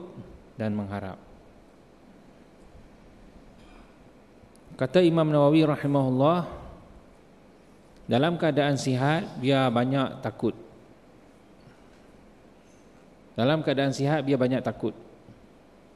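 A man speaks into a microphone in slow, measured bursts with pauses between them.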